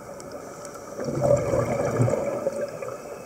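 Air bubbles gurgle and rumble as a diver exhales through a regulator underwater.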